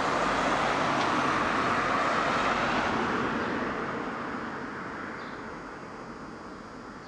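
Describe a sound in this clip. A car drives past on the road and fades into the distance.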